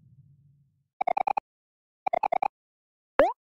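Short electronic blips chirp quickly, one after another, as game text types out.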